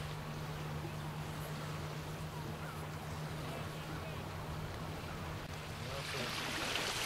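Small waves lap softly at the shore.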